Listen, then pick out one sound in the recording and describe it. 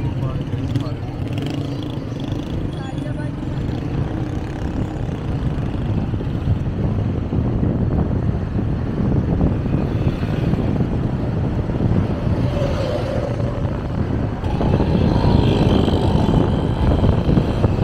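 Tyres roll over a paved road.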